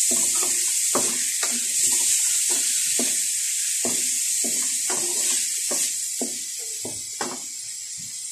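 A wooden spatula scrapes and knocks against a metal pan.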